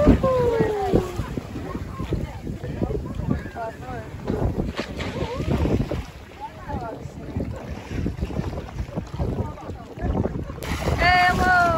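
Water splashes as a person swims close by.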